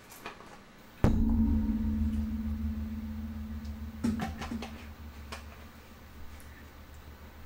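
A low, steady electronic drone hums.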